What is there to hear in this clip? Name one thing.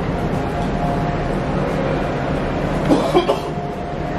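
A sliding glass door rolls open.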